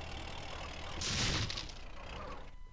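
A structure crashes and shatters loudly.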